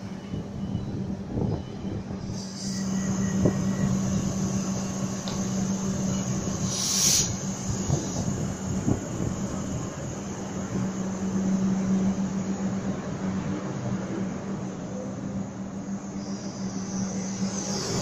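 A train's wheels clatter and rumble over the rails as it moves off.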